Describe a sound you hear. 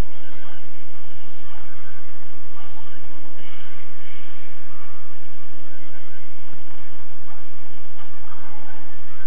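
Video game sound effects whoosh and chime faintly from a small handheld speaker.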